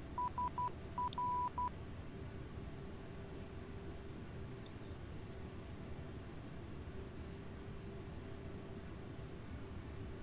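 Jet engines drone steadily with a low rumble.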